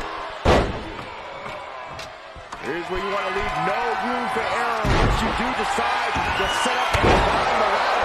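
Heavy thuds of bodies slamming onto a ring mat.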